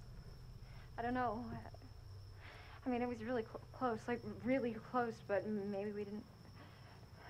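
A young woman speaks hesitantly, close by.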